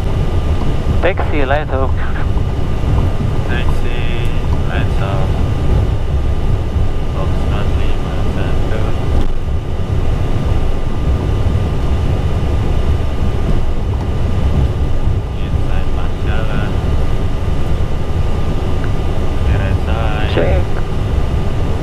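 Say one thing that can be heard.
A young man speaks calmly over a headset radio.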